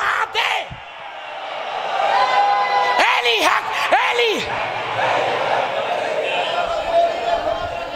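A man speaks loudly and passionately into a microphone, heard through a loudspeaker with echo.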